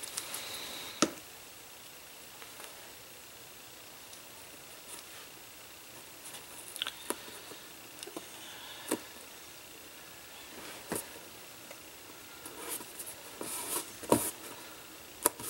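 Hands tap and press on stiff card.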